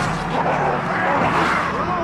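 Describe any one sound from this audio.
A young man yells wildly.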